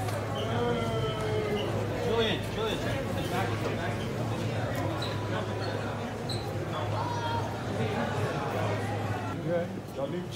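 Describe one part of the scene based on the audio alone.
A crowd of people chatters nearby in an echoing space.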